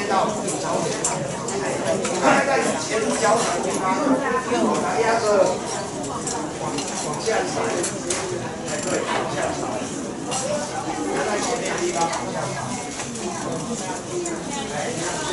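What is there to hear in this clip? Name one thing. A group of men and women sing together in a large echoing hall.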